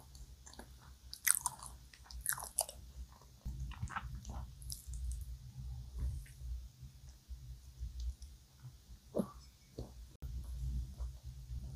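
A young woman chews soft cake with wet, sticky mouth sounds close to a microphone.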